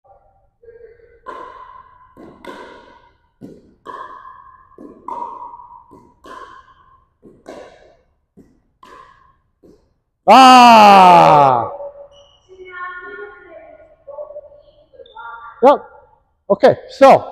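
Paddles strike a plastic ball back and forth.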